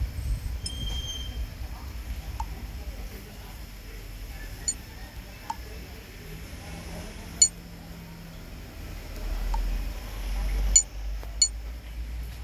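Menu buttons click softly as options are tapped.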